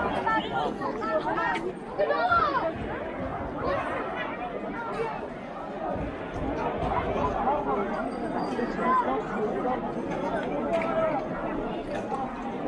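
A large crowd of men and women talks and shouts outdoors.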